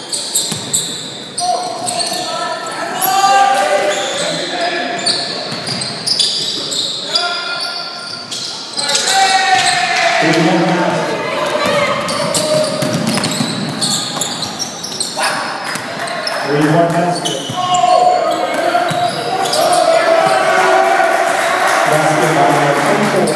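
Spectators cheer and shout in an echoing gym.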